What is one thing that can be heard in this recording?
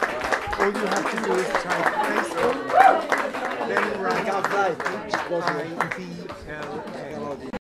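A crowd of adults chatters nearby in a lively murmur.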